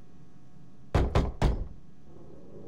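A hand knocks sharply on a wooden door.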